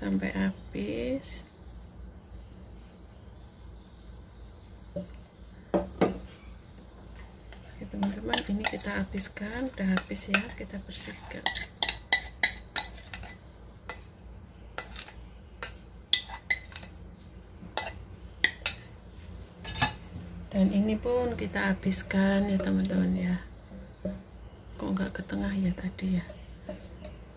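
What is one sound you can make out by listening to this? A spatula scrapes batter from a metal bowl.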